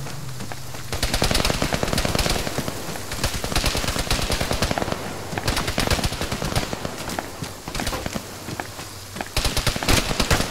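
Rain pours down steadily outdoors.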